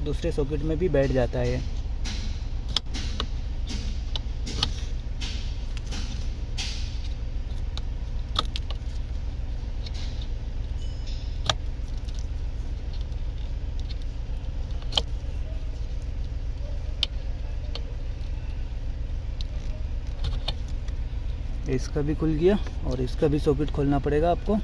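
Plastic wire connectors click and rattle close by.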